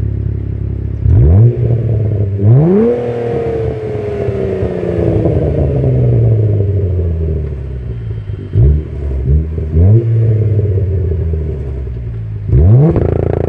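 A car engine revs sharply several times, with a loud rising and falling exhaust roar.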